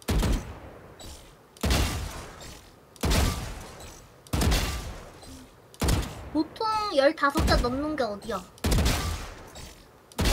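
A rifle fires single loud shots that echo, at a steady pace.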